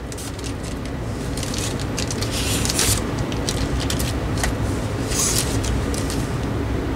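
A plastic bag crinkles.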